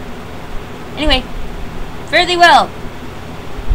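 A young woman makes short, high vocal sounds close to a microphone.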